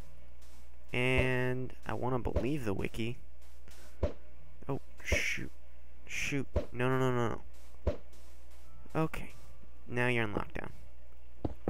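A game villager makes short nasal grunting hums.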